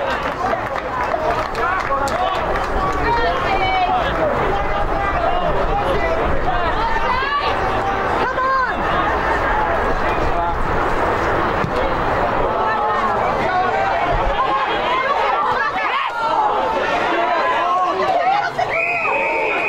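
Spectators shout and cheer outdoors, close by.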